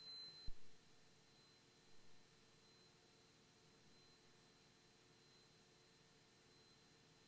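An aircraft engine hums steadily in the background.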